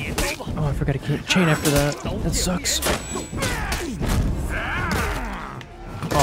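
Steel blades clash and clang in a fight.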